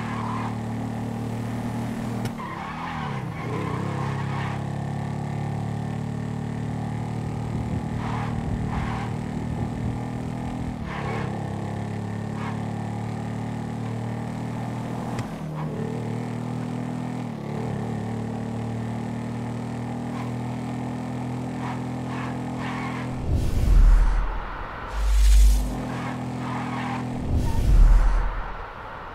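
A motorcycle engine hums steadily and shifts pitch as it changes gear.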